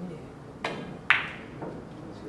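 Billiard balls knock together with a clack.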